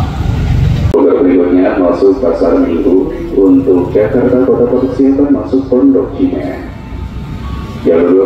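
A train sounds its horn as it approaches.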